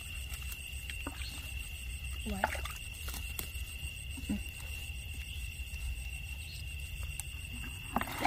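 A girl scoops wet mud by hand.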